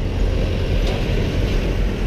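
A truck drives past.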